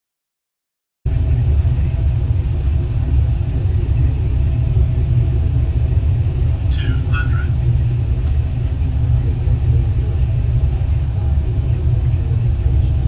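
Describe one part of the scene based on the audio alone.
A jet engine roars with a low, steady drone.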